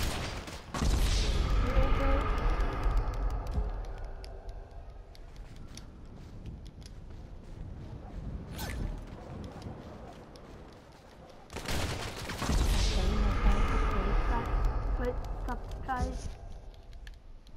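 A deep, booming rumble swells and slowly fades as a game character dies.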